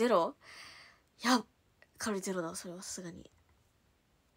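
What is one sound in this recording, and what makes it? A young woman speaks brightly and playfully close to a microphone.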